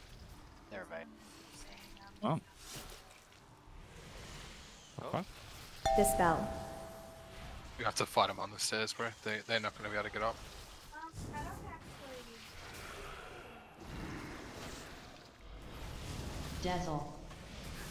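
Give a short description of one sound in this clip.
Fantasy game spells whoosh and crackle in combat.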